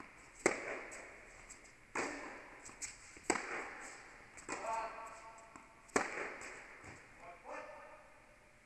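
Tennis balls bounce on the court.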